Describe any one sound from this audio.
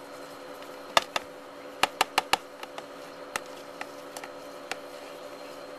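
Metal tongs click and tap against a plastic tub.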